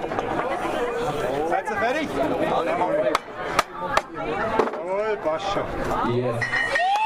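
A wooden mallet knocks a tap into a beer keg with sharp blows.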